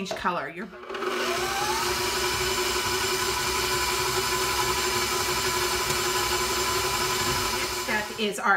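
An electric stand mixer whirs steadily.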